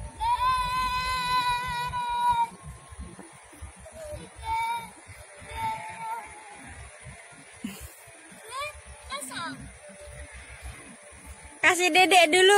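A young child shouts and squeals excitedly nearby.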